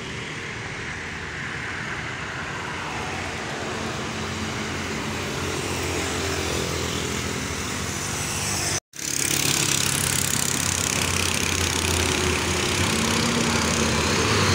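A truck engine rumbles as it approaches along a road.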